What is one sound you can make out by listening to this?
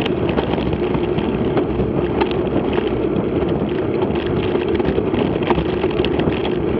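Tyres roll and crunch steadily over a gravel track.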